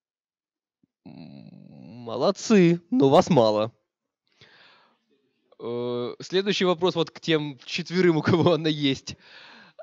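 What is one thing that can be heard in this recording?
A man speaks into a microphone, giving a talk with animation.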